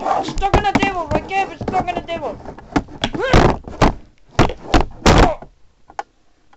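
Objects bump and rustle against a microphone as it is handled.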